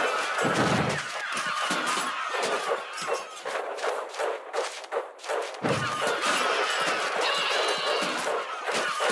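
Many small cartoon creatures patter and squeak busily in a game battle.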